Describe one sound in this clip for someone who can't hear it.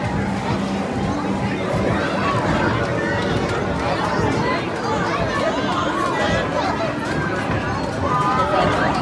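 An arcade bowling game plays lively music and sound effects.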